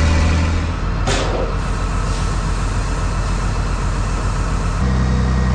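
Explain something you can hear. A tractor engine idles nearby outdoors.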